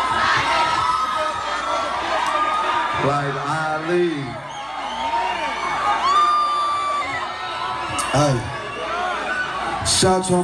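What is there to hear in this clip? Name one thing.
A crowd cheers and shouts loudly in a noisy hall.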